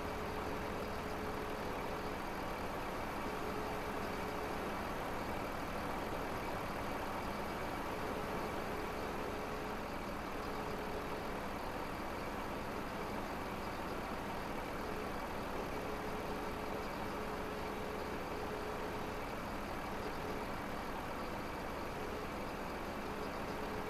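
A hydraulic crane whines as it moves.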